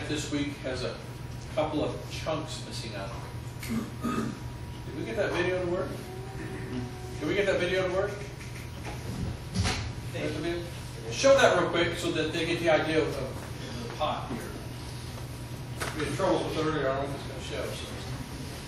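A middle-aged man speaks to an audience through a microphone, with animation, in an echoing hall.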